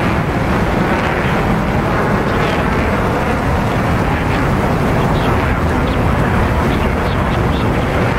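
Wind rushes loudly past a jet in flight.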